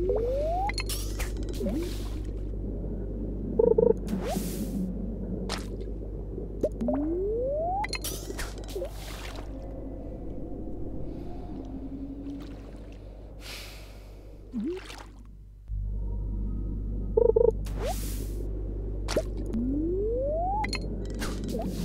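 A fishing line whizzes out with a rising swish.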